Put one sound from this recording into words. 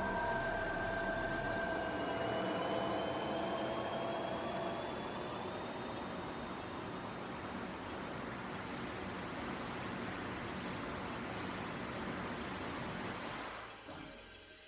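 A shimmering magical tone slowly rises in pitch.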